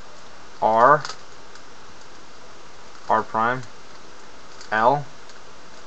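Plastic puzzle cube pieces click and clack as they are turned by hand.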